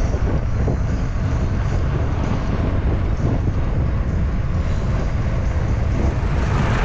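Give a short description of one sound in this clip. Wind rushes and buffets loudly against a microphone while cycling outdoors.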